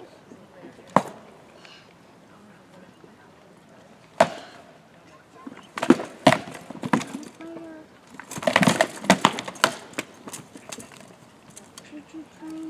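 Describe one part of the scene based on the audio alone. Wooden weapons strike shields with sharp, hard knocks.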